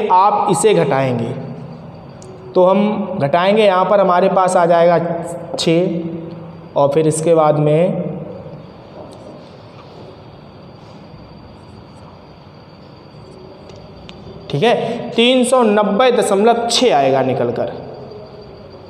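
A young man explains calmly and clearly, close by.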